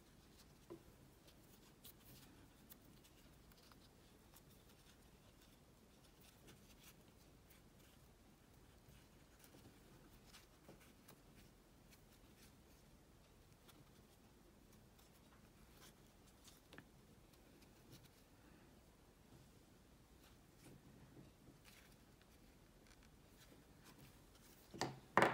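A crochet hook clicks faintly as it pulls through yarn.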